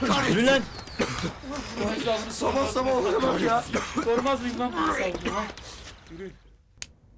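A young man talks loudly and with animation outdoors.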